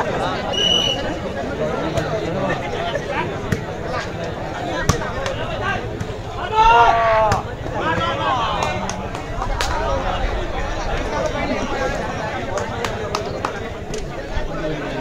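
A large outdoor crowd chatters and shouts throughout.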